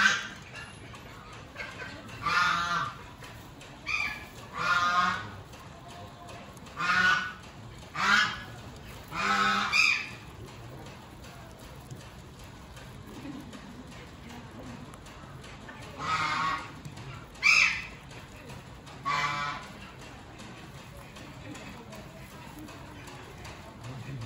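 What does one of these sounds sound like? Guinea pigs munch on hay.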